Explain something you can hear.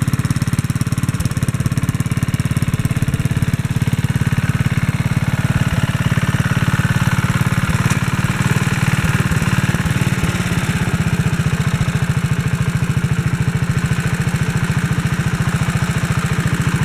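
A small engine chugs and putters steadily close by.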